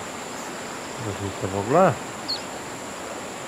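A fishing lure splashes into calm water.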